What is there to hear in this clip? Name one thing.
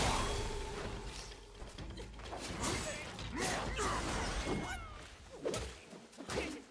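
Flames burst and roar loudly.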